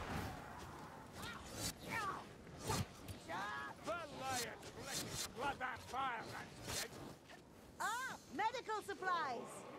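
Blades swing and strike with sharp hits.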